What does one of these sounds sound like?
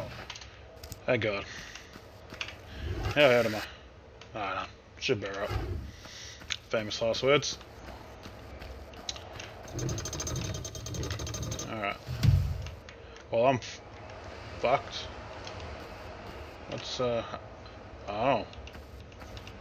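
A man talks casually close to a microphone.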